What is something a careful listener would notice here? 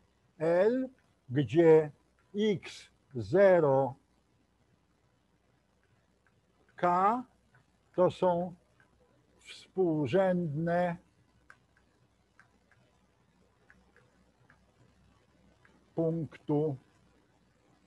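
An elderly man speaks calmly in short phrases, with pauses.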